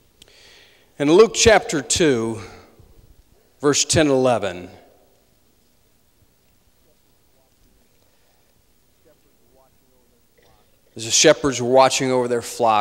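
A man speaks slowly and earnestly into a microphone in a large echoing hall.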